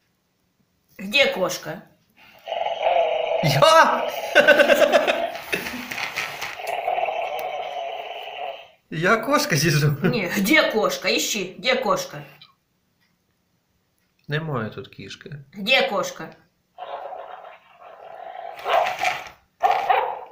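A toy dog yaps and barks through a small speaker.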